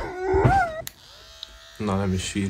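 Electric hair clippers buzz.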